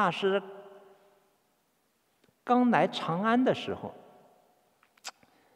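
A man chants in a deep, drawn-out voice through a microphone, with a long echo.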